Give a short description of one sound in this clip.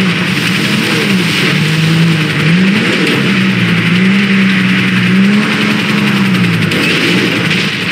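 A car engine revs up and down as the car drives over rough ground.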